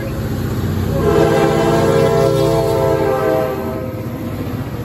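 A train horn blares loudly close by.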